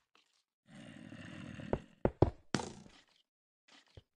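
Stone blocks crack and break.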